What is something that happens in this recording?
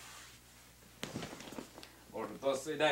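Clothing rustles as a man moves past nearby.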